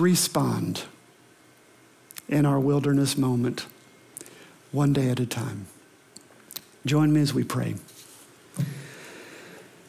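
An older man speaks calmly through a microphone, pausing between phrases.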